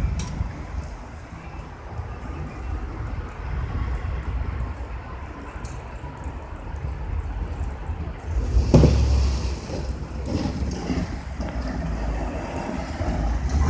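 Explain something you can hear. A snowplough blade scrapes along a snowy road.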